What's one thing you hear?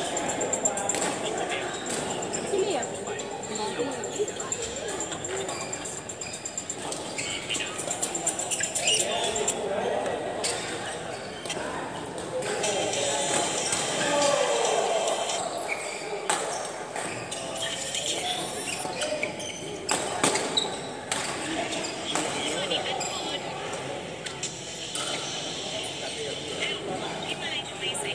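Men's voices chatter and call out nearby.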